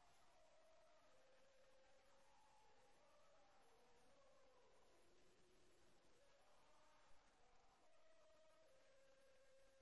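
A crowd of men and women sings together in a hall.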